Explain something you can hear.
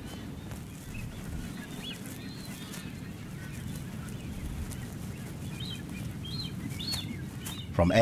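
A seabird chick peeps softly.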